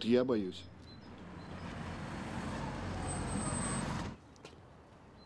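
Sedans drive up on asphalt and pull to a stop.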